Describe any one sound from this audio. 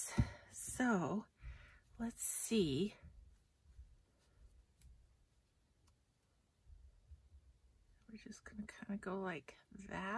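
Paper rustles softly as fingers press a small paper piece onto a card.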